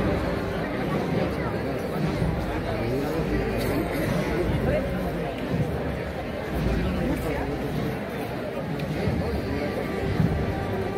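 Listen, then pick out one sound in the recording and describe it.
A crowd of people chatters all around outdoors.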